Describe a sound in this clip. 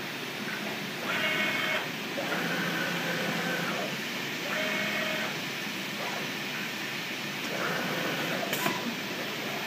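A cutting machine's motors whine in short pitched bursts.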